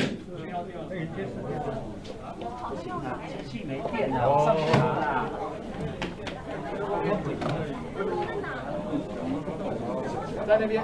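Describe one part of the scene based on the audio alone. Several men and women chatter in the background of a room.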